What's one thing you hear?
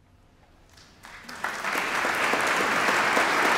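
An orchestra's strings play along.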